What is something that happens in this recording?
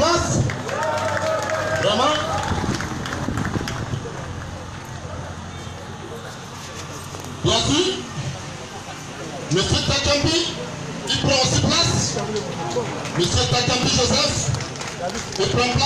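A man speaks loudly over a loudspeaker outdoors.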